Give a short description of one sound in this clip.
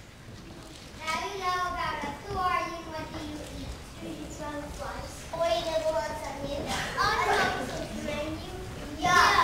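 A young boy speaks clearly and steadily in an echoing hall.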